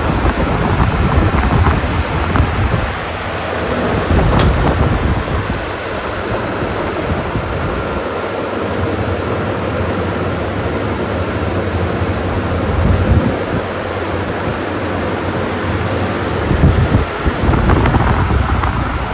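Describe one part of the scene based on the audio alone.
Electric fans whir steadily.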